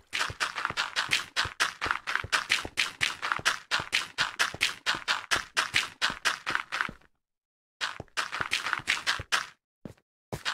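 Rapid footsteps crunch over gravel and dirt.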